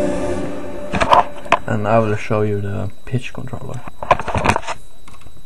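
Keys and the instrument are bumped with sharp clicks and knocks.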